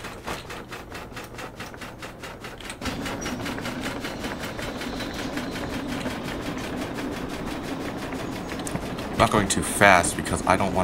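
A steam locomotive chugs with a fast, steady rhythm.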